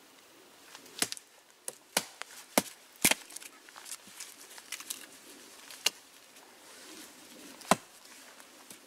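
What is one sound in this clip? An axe strikes wood with sharp, repeated knocks.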